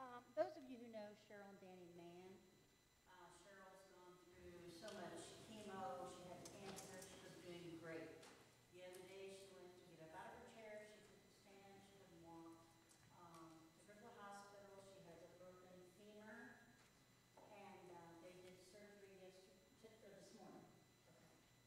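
An elderly man speaks calmly in an echoing hall.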